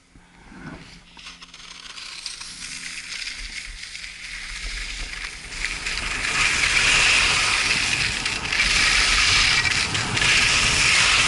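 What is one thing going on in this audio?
Skis scrape and hiss over packed snow, growing louder as speed builds.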